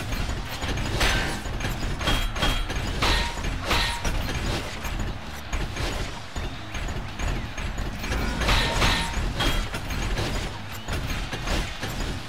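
Heavy metal punches clang and thud.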